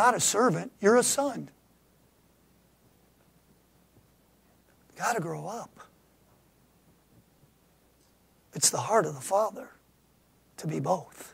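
A middle-aged man speaks with emphasis through a microphone, in short bursts with pauses.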